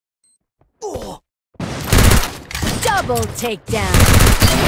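Gunshots ring out in a video game.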